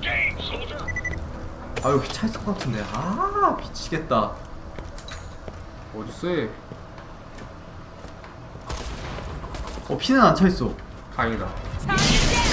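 Gunshots and electronic effects sound from a video game.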